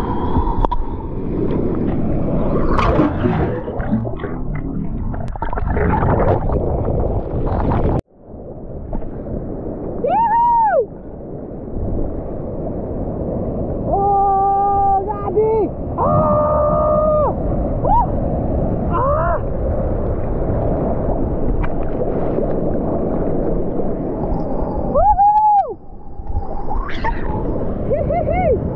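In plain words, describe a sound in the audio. Water sloshes and splashes around the microphone.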